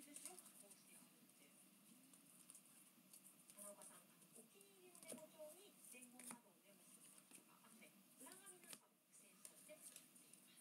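Trading cards rustle and click as they are shuffled by hand.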